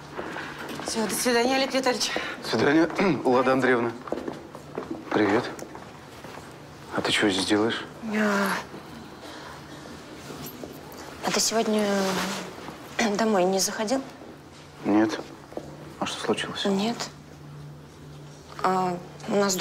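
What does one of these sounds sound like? A woman speaks in a friendly voice nearby.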